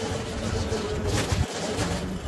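A rake scrapes across dry soil and mulch.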